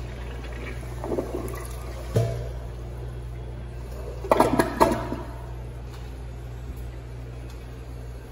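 Water swirls and gurgles as a toilet flushes.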